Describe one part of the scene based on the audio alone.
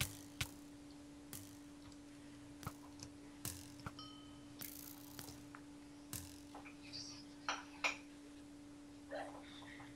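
A bowstring is drawn and released with short twangs.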